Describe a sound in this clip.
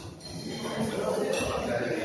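A crowd of adults chatters and talks in a large echoing hall.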